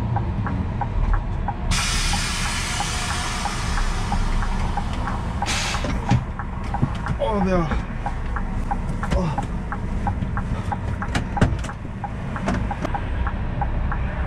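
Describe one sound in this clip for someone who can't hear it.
A heavy diesel engine idles with a low, steady rumble.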